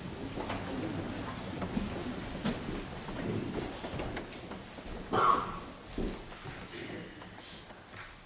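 Several adults chatter quietly in a large echoing hall.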